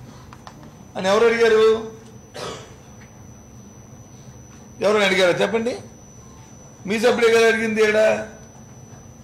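A middle-aged man speaks into a microphone in short, emphatic bursts with pauses.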